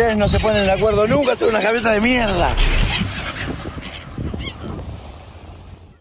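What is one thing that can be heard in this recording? Seagulls call on a beach.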